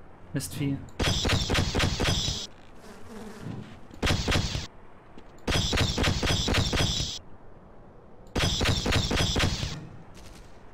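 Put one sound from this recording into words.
A weapon fires in rapid buzzing bursts.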